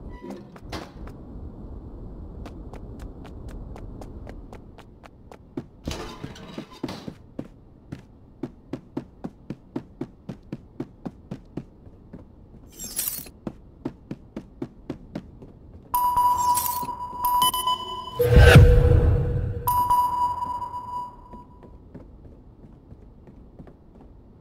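Footsteps thud steadily across hard floors.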